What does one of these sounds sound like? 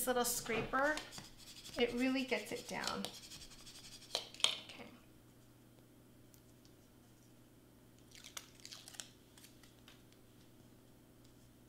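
Hands rustle and tap paper pieces on a mat.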